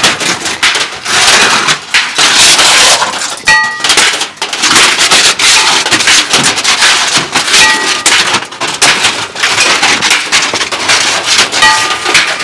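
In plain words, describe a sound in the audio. A stick smashes against objects with loud whacks.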